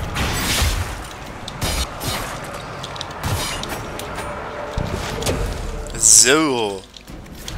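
Magic blasts crackle and whoosh in a fight.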